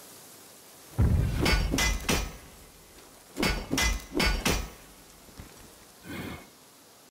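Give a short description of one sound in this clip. A hammer strikes metal in ringing blows.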